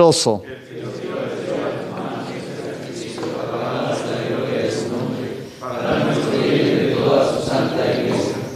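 A man speaks quietly through a microphone.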